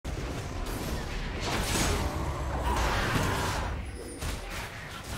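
Spell effects whoosh and crackle during a video game fight.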